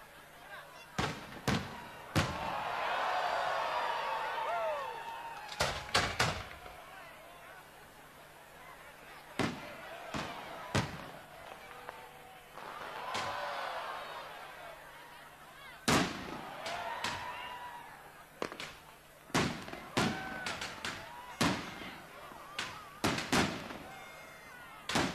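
Fireworks burst with loud bangs and crackle.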